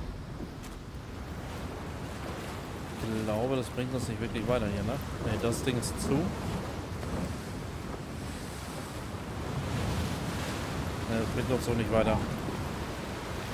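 Waves crash against rocks below.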